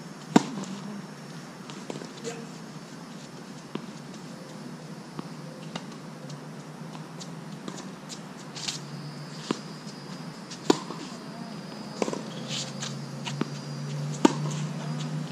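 A tennis ball is struck with a racket, back and forth in a sharp, popping rally.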